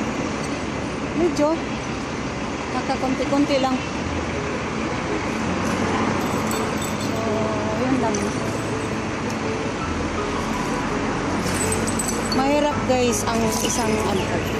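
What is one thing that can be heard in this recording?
Traffic hums steadily along a nearby street.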